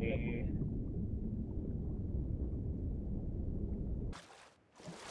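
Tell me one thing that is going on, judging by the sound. Water rumbles and sloshes in a low, muffled way.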